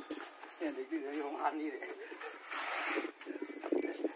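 A shovel scrapes and digs into dirt.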